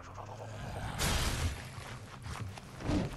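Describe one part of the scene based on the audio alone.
A blade swings through the air.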